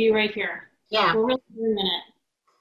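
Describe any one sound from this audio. A woman speaks warmly into a microphone.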